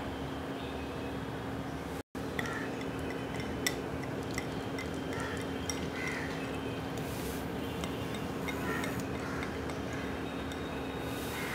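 Melted ghee pours and splats softly into a pan.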